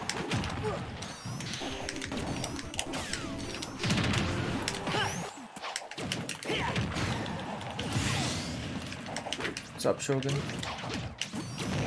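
Upbeat video game music plays.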